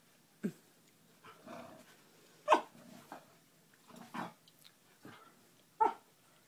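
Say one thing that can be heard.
A dog gives short, sharp yips and grunts close by.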